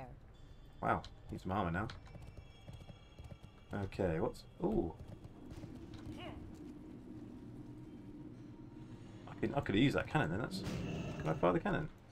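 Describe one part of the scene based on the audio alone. Hooves clop on stone as a horse trots.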